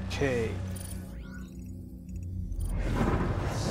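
Soft electronic menu tones blip and chime.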